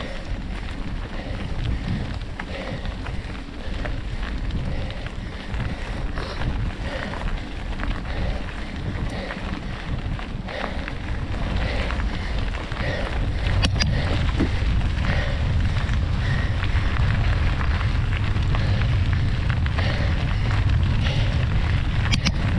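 Wind rumbles against the microphone.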